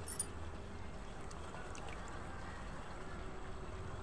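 Water drips and splashes lightly from a hand.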